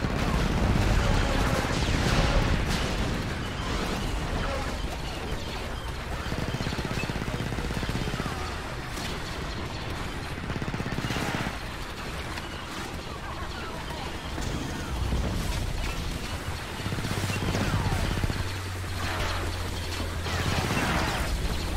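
A video game explosion booms.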